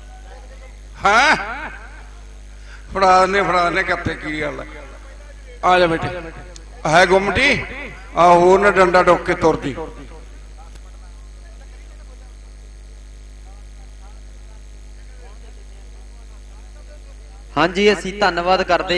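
A man announces loudly through a microphone and loudspeaker, in short bursts.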